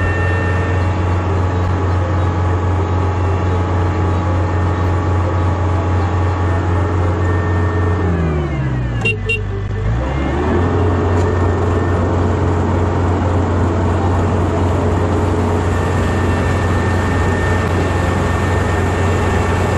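A combine harvester's engine drones loudly and steadily close by, dipping briefly as it slows and then picking up again.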